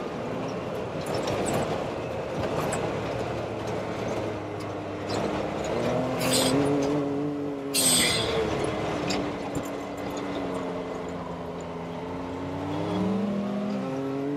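An engine hums and revs, rising and falling in pitch.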